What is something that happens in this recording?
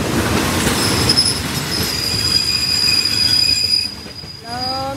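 A stationary train idles with a steady low rumble.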